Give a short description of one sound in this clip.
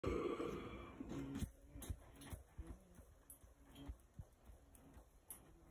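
A baby's hands and knees thump softly on a wooden floor as the baby crawls.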